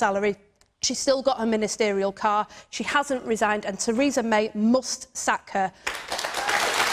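A young woman speaks forcefully into a microphone.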